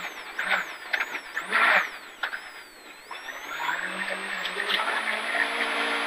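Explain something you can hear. A car engine roars and revs up inside the car.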